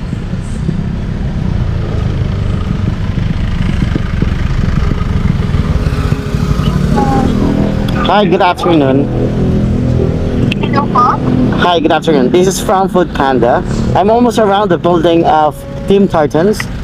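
A motorcycle engine idles with a low rumble.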